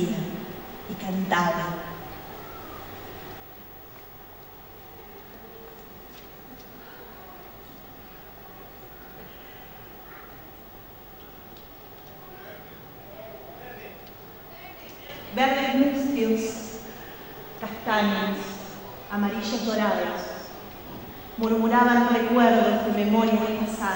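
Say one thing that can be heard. A young woman sings through a microphone in a large echoing hall.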